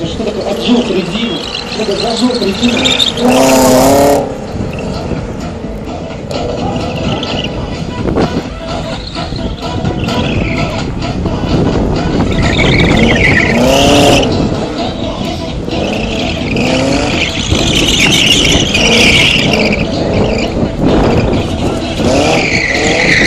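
A car engine revs hard and roars.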